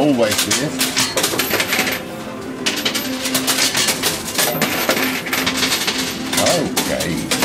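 An arcade coin pusher machine hums and whirs steadily.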